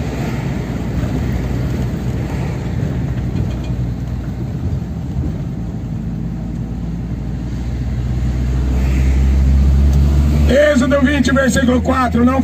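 Tyres roll on smooth pavement.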